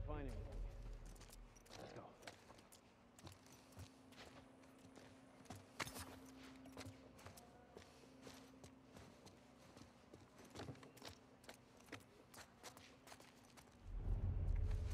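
Footsteps creak and crunch softly on a debris-strewn wooden floor.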